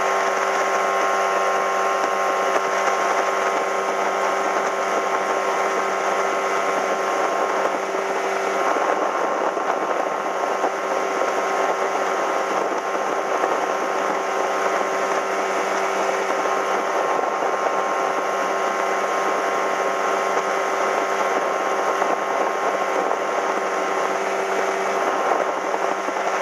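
Water rushes and splashes against a fast-moving boat's hull.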